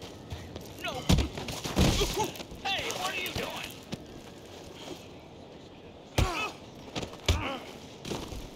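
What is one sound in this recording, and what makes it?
Punches thud as a man is beaten.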